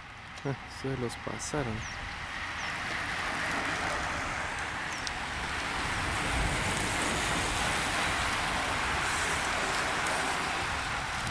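Racing bicycles whir past on a paved path.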